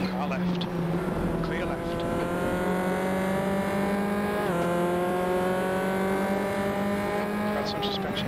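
Another racing car's engine drones close ahead.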